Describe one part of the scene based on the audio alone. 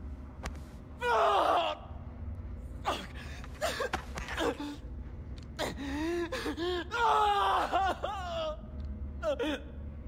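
A young man groans and cries out in pain close by.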